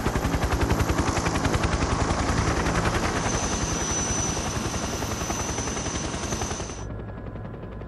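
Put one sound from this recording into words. Helicopter rotors thump loudly and steadily.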